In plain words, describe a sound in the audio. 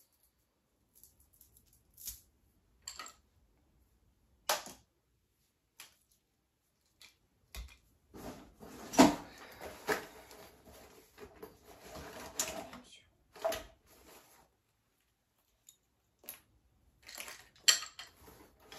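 Plastic toys clatter and click as they are handled.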